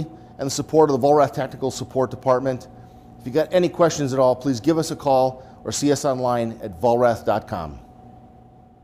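A man speaks calmly into a clip-on microphone.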